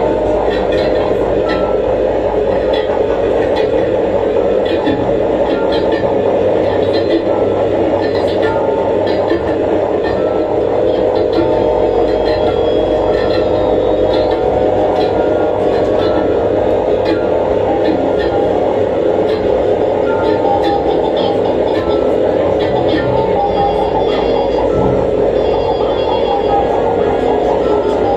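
Electronic music plays loudly and steadily through loudspeakers in a room.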